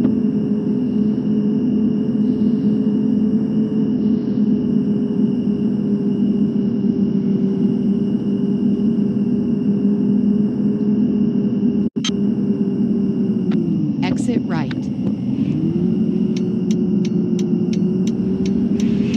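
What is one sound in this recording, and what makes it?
A bus engine drones steadily, dropping low as the bus slows, then picking up again.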